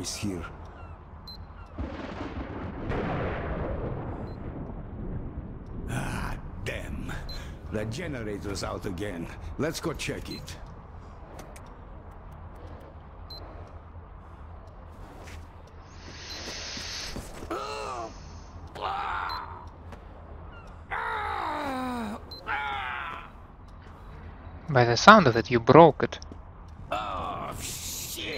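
A gruff man speaks with a raised, urgent voice.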